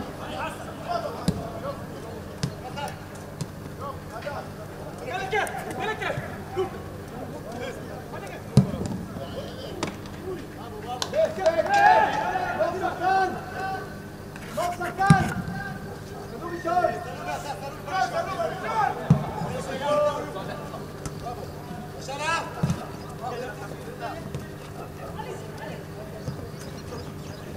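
A football is kicked with sharp thuds across an open pitch.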